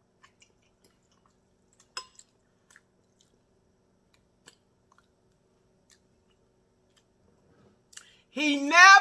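A woman chews and smacks her lips close to a microphone.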